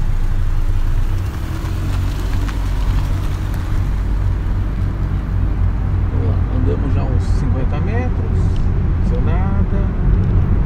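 A car engine rumbles low and steady as the car pulls away.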